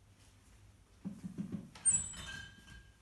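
A metal pot clanks on a counter.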